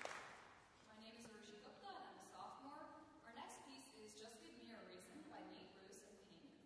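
A string ensemble plays softly.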